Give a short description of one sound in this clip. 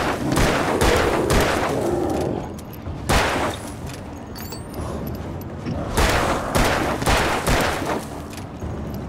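A revolver fires repeated loud shots.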